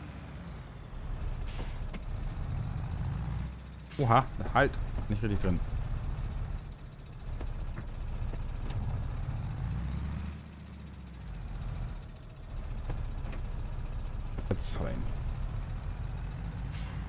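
A tractor engine rumbles low and steady.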